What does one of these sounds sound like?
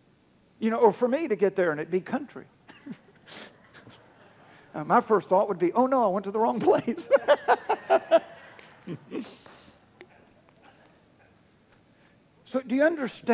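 A middle-aged man speaks with animation into a microphone, pausing between phrases.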